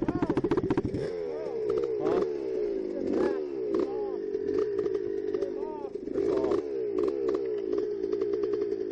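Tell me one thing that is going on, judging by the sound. A second dirt bike engine idles and revs nearby.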